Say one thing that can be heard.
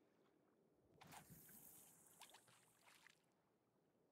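A fishing line whizzes off a spinning reel during a cast.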